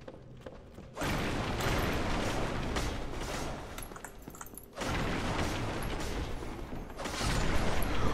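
Wooden barrels and crates crash and splinter as they are smashed.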